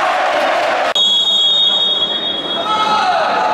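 A referee's whistle blows a long shrill blast.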